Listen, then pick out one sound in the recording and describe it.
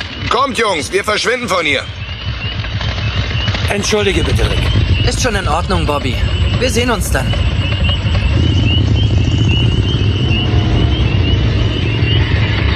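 Motorcycle engines rumble and idle steadily.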